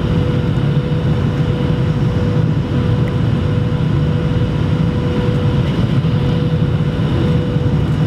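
Jet engines roar steadily with a loud, constant hum.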